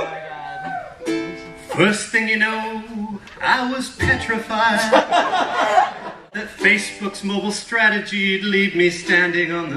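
A ukulele is strummed and plucked in a bright melody.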